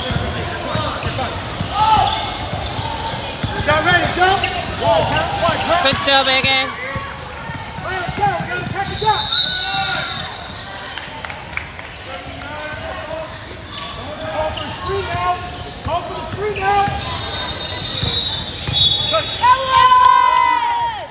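Spectators and players shout and chatter around the court.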